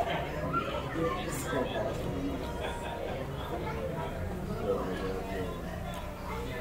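A young man chews food close by.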